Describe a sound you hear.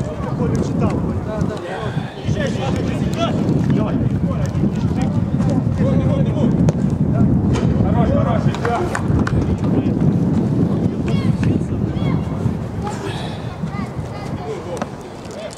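Young men shout to each other outdoors.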